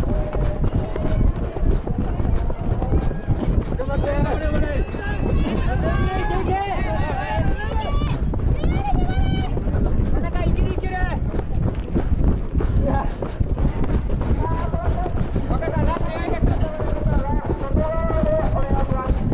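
Wind buffets the microphone as the runner moves.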